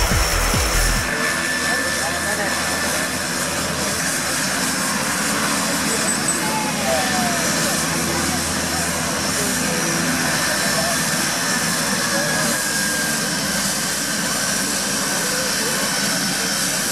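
Propeller engines drone steadily nearby.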